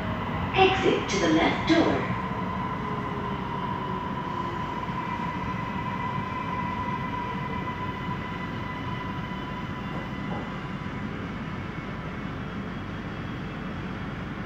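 A train rumbles and hums steadily along the track.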